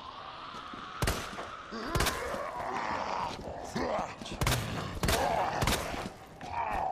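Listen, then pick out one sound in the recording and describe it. A pistol fires several loud shots in a room that echoes.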